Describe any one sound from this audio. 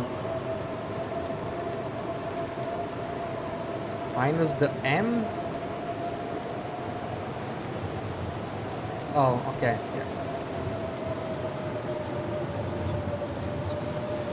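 A fire crackles softly.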